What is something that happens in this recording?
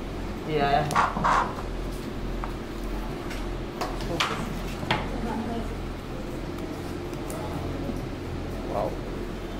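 A cardboard box rustles and knocks as a laptop is lifted out.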